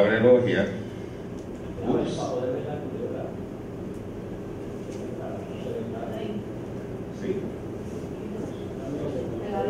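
An elderly man reads out calmly through a microphone in an echoing room.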